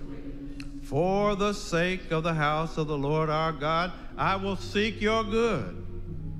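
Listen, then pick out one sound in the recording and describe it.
A man sings loudly through a loudspeaker.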